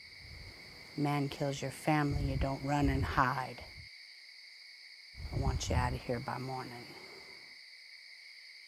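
An elderly woman speaks sternly and close by.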